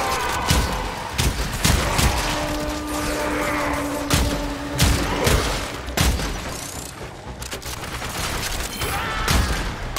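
Gunshots ring out in sharp bursts.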